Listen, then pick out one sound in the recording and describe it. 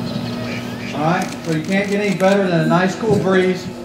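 A man speaks loudly into a microphone over a loudspeaker, outdoors.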